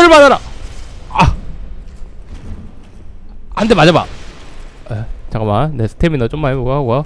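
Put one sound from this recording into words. A blade strikes with a sharp clang.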